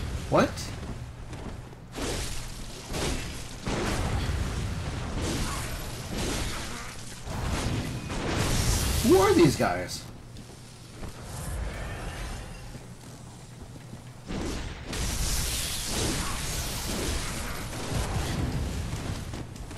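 Weapon blows and impacts thud and clang.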